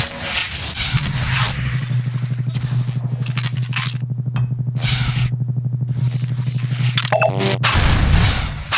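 A gravity gun hums while holding an object.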